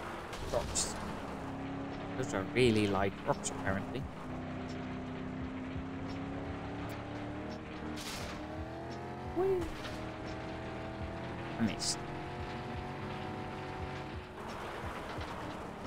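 Tyres crunch and skid on a gravel road.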